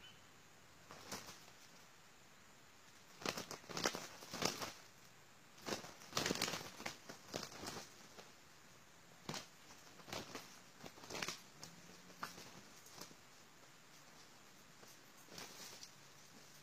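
Roosters flap their wings and scuffle in bursts as they fight.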